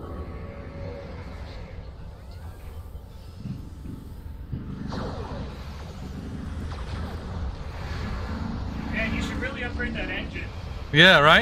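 Explosions rumble low and deep.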